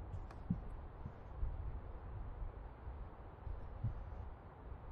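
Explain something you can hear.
Slow footsteps thud softly on a floor.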